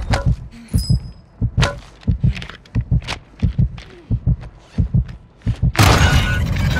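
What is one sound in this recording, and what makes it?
A pistol fires a rapid series of gunshots.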